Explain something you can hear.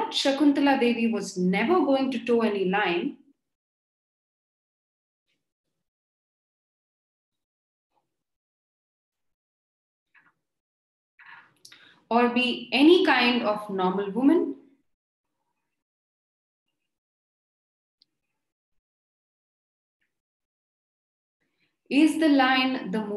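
A young woman speaks calmly over an online call, in bursts with long pauses.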